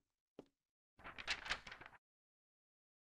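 A sheet of paper rustles as it unfolds.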